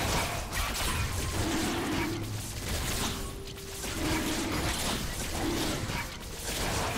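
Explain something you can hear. Game attack and spell effects crackle and thud repeatedly.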